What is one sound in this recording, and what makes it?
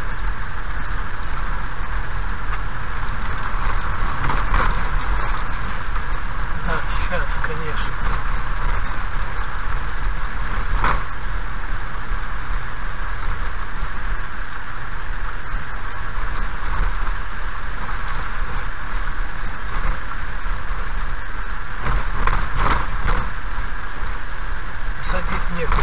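Tyres rumble and splash over a wet, rough road.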